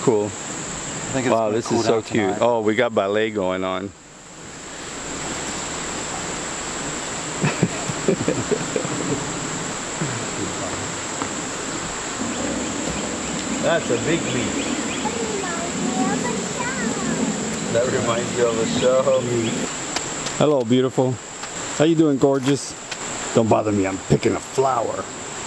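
A middle-aged man talks close to the microphone, outdoors.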